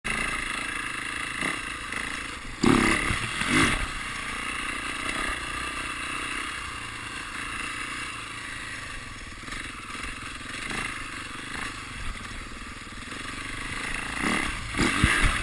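A dirt bike engine buzzes steadily and revs up and down close by.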